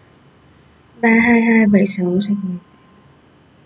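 A young woman speaks briefly and softly close to a microphone.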